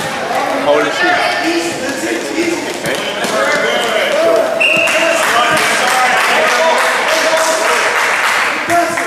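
Spectators shout and cheer in an echoing hall.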